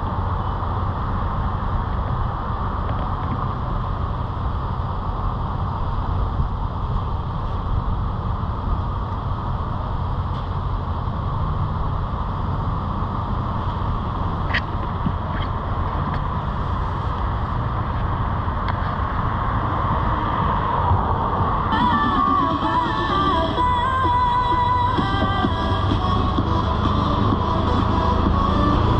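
Traffic drives through an intersection nearby.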